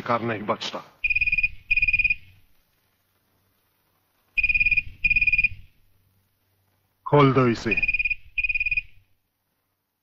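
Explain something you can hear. A telephone rings in repeated double bursts.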